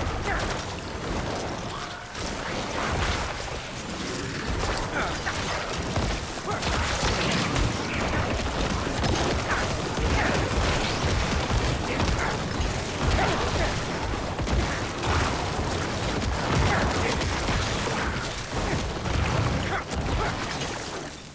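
Game spells boom and crackle in quick bursts.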